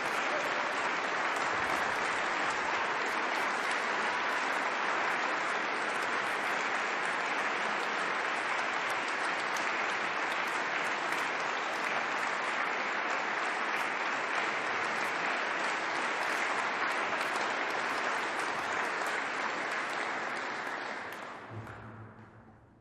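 An audience applauds loudly in a large echoing hall, then the clapping fades away.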